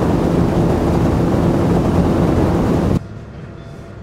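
Water rushes and wind blows loudly outdoors.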